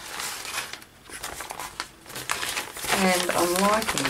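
A sheet of paper rustles as it is lifted and moved.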